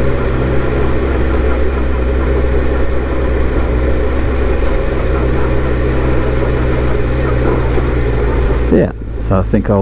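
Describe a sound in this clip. A motorcycle engine rumbles steadily at low speed.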